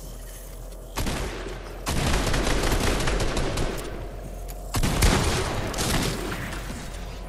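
Loud blasts and rumbling crashes burst out.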